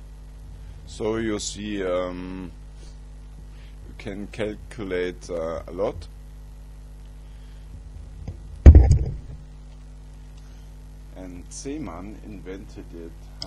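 A middle-aged man talks calmly close to the microphone.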